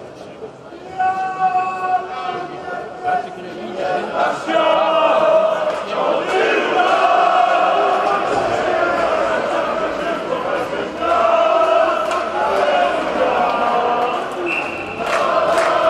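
A crowd chants and cheers in a large echoing arena.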